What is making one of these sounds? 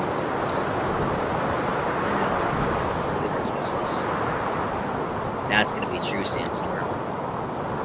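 Wind roars steadily in a sandstorm.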